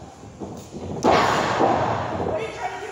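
A body slams hard onto a ring mat with a loud thud.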